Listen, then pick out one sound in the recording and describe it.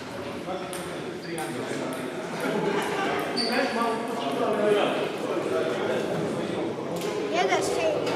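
A table tennis ball taps on a table in the distance.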